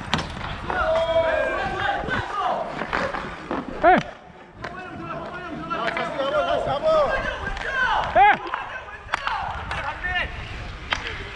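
Young male players call out to each other across the rink.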